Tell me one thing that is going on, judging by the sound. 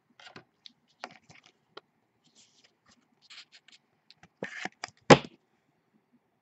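A plastic card case clicks and rattles as hands turn it.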